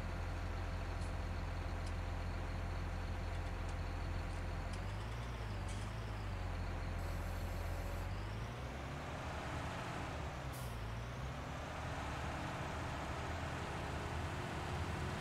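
A tractor engine rumbles steadily and revs up and down as it drives.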